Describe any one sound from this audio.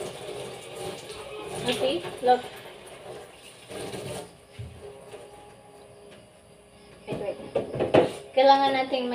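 Dishes clatter and knock together.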